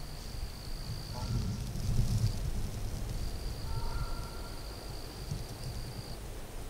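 Wind blows outdoors and rustles through leafy branches.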